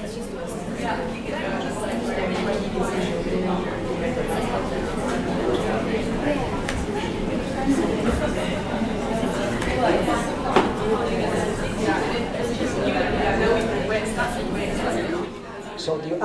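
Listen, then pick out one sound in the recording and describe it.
Keys click on a laptop keyboard.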